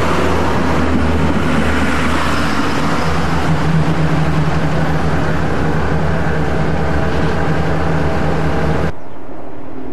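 A diesel train engine hums and throbs steadily close by.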